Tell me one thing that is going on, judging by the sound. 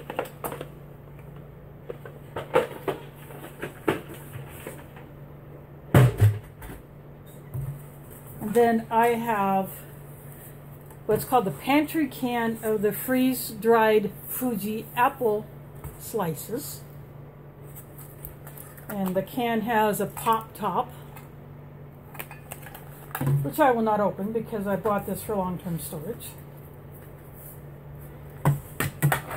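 Plastic and cardboard items knock and rustle in hands.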